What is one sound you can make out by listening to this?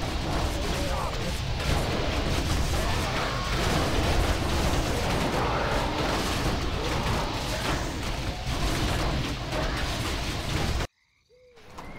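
Weapons clash in a busy battle.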